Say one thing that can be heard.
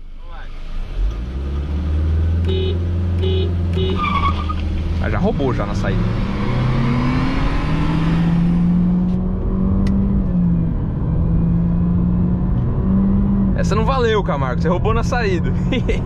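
A car engine revs and roars as the car accelerates hard, shifting through gears.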